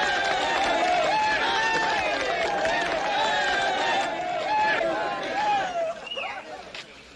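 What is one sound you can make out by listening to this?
A crowd cheers and shouts loudly outdoors, then quiets down.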